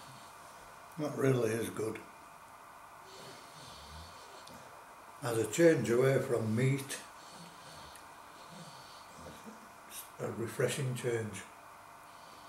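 An older man speaks close to the microphone in short phrases.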